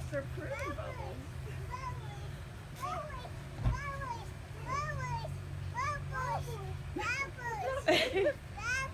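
Small children squeal and babble playfully close by.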